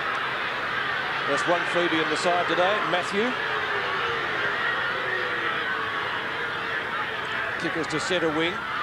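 A large crowd roars steadily in an open stadium.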